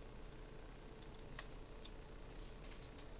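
Playing cards softly rustle and tap as a hand picks them up.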